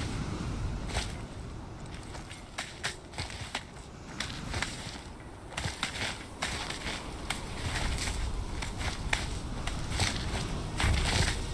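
Hands grab and scrape on rock.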